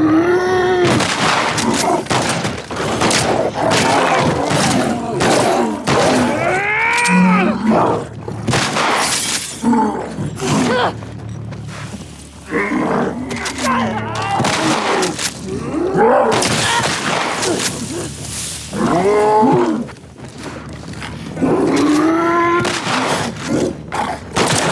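A pistol fires loud, sharp shots that echo in an enclosed space.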